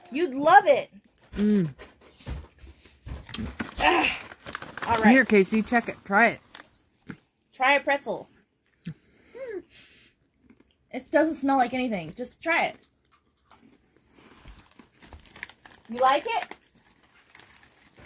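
A paper packet rustles as it is torn open.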